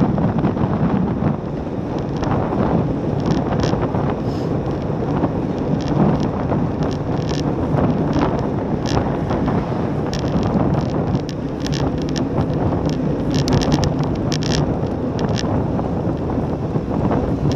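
Wind rushes and buffets loudly past a moving bicycle.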